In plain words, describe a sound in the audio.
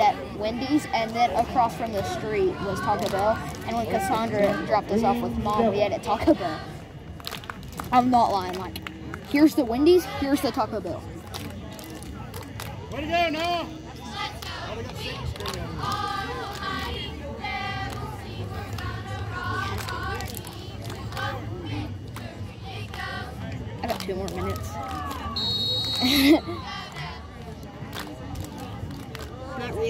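Voices of a crowd murmur outdoors.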